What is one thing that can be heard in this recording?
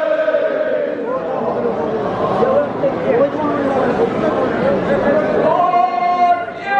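A crowd of men cheers and shouts with excitement.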